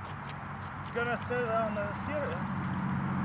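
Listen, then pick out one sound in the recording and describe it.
A man speaks nearby with excitement.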